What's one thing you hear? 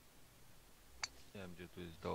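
A golf ball is struck with a sharp click.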